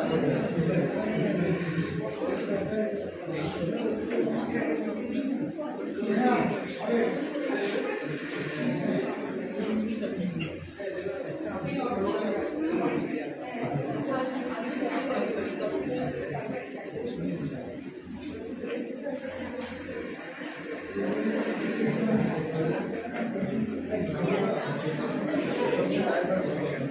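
A young man speaks calmly into a microphone, heard through loudspeakers in an echoing room.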